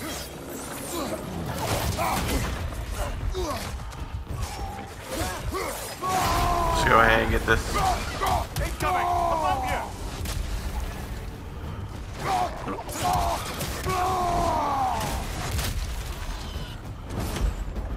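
Metal weapons clash and strike in heavy blows.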